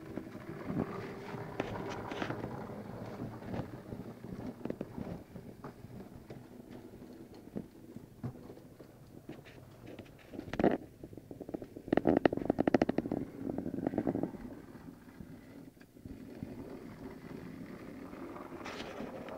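A small model train's motor hums and its wheels click along the rails.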